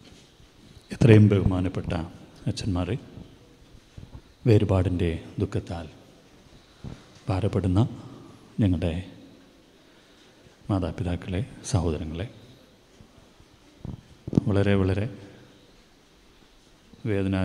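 A man speaks slowly into a microphone, pausing between phrases.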